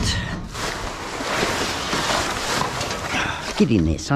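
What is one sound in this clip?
Plastic sheeting rustles and crinkles.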